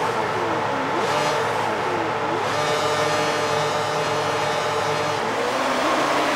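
A Formula One race car engine revs high on the grid.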